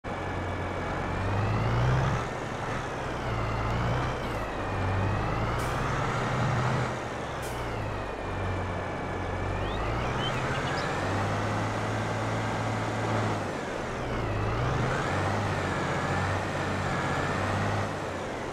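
A tractor engine rumbles steadily, its pitch rising and falling as it revs.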